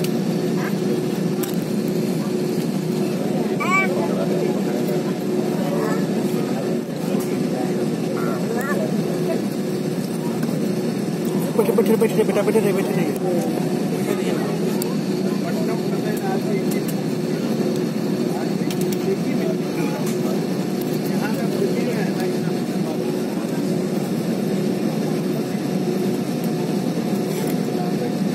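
Tyres rumble over a wet runway.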